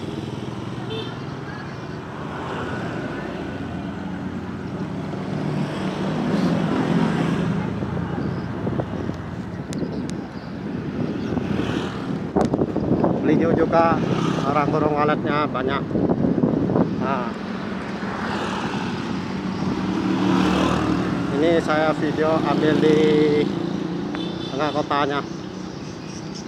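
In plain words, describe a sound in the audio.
A small motorcycle engine hums while riding along a road.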